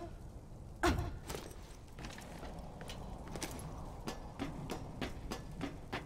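Hands and feet clang on a metal ladder while climbing.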